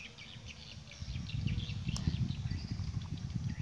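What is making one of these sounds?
A tape measure reel rattles as it is wound.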